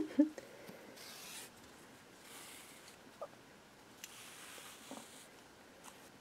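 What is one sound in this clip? Yarn softly rustles as it is pulled through crocheted fabric.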